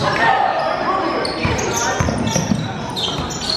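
A basketball thumps against the floor.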